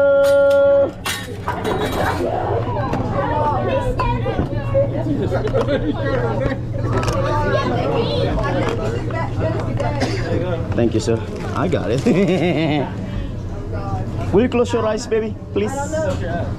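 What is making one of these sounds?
A group of men and women chat and laugh nearby.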